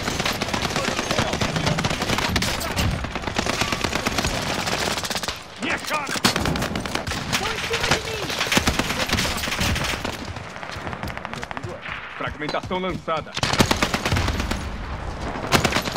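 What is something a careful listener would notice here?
Guns fire in rapid bursts.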